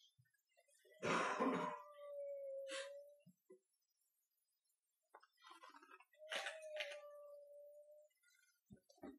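A woman's voice sings long, held notes nearby.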